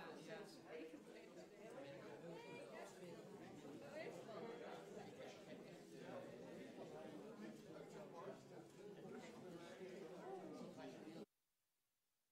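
A crowd of people chatters all at once.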